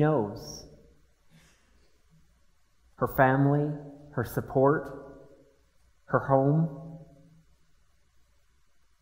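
An electric piano plays slow chords that ring out and fade.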